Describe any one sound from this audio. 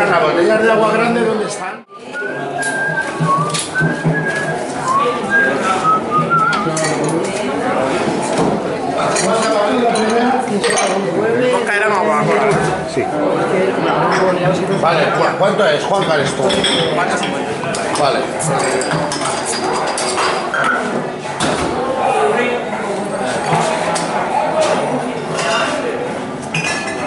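Several people talk with animation nearby.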